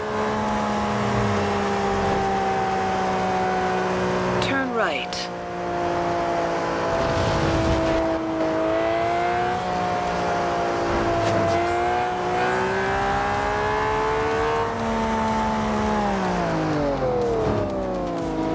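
A V12 supercar engine roars at high revs, dipping in pitch with gear changes.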